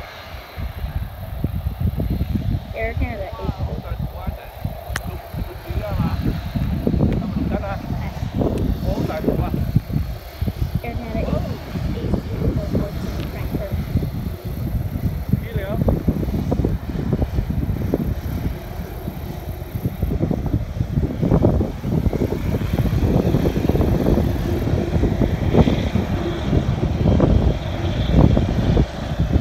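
A jet airliner's engines roar in the distance as it taxis.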